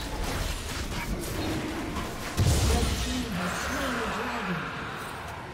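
Magic spells whoosh and crackle in a fight.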